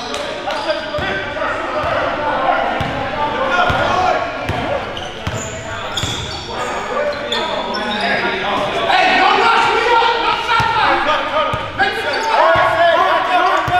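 A basketball thumps as it is dribbled on the floor.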